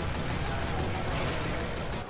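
A heavy machine gun fires a rapid burst.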